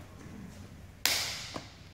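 Two hands meet in a loud, sharp slap.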